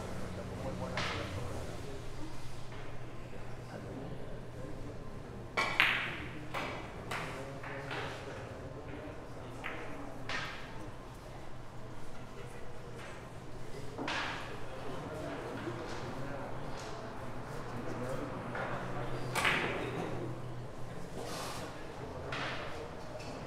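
Billiard balls click sharply against each other in an echoing hall.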